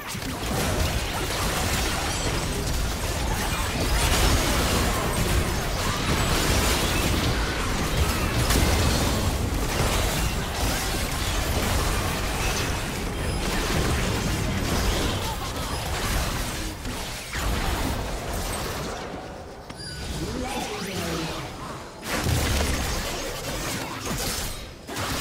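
Magic blasts, clashes and explosions crackle and boom in a busy fight.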